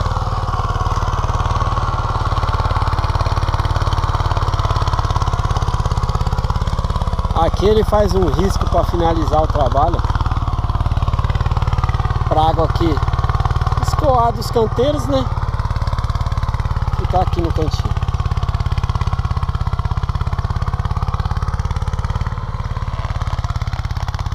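A small engine runs steadily with a low drone.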